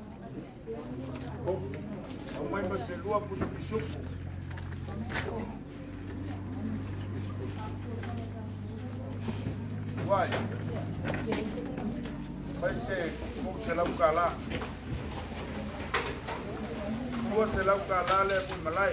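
Men and women talk casually in a group outdoors.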